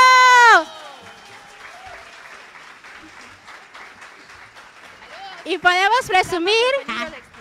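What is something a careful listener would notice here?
A group of young women sing together through microphones.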